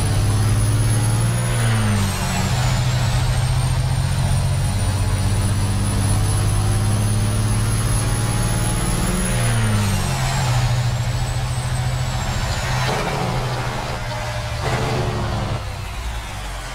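A heavy truck engine drones loudly, briefly dipping in pitch at gear changes.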